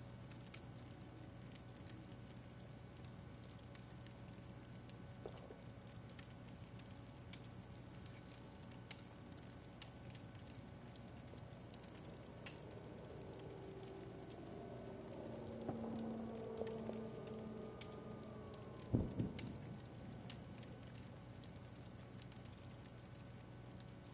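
A campfire crackles steadily.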